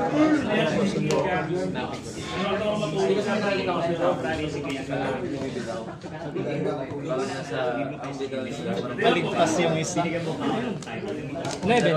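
Playing cards riffle and slap softly on a mat.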